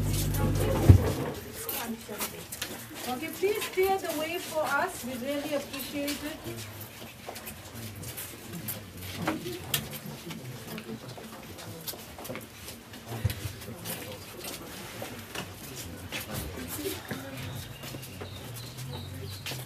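A crowd of men and women murmur and talk quietly nearby.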